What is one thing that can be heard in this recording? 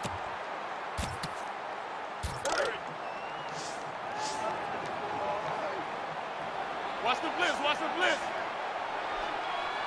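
A large stadium crowd murmurs and roars steadily.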